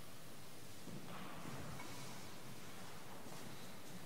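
A man speaks softly in a large echoing hall.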